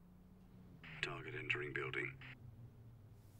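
A woman speaks quietly into a phone, close by.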